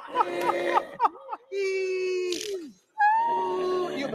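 Several young men and a young woman laugh through microphones.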